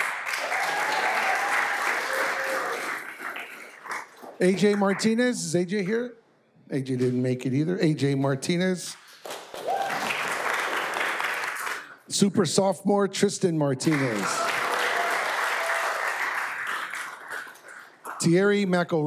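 A group of people applauds in a room.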